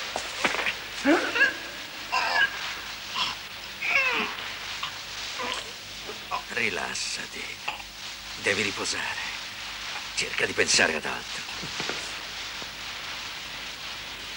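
A man groans and gasps in strain.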